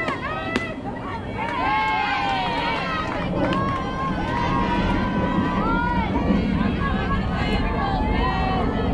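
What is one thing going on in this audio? Young girls cheer and call out across an open field.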